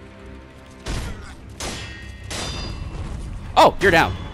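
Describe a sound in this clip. Swords clash and ring sharply.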